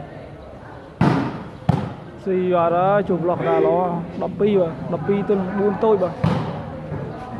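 A ball is struck with sharp thuds.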